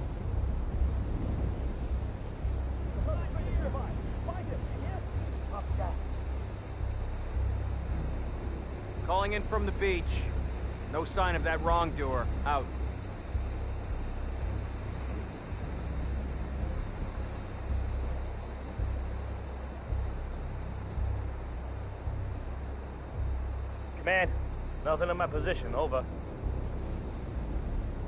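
Tall grass rustles in the wind.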